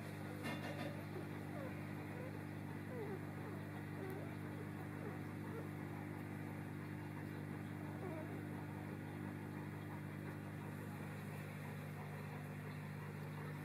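Newborn puppies squeak and whimper softly.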